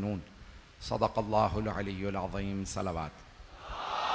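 A man speaks forcefully into a microphone.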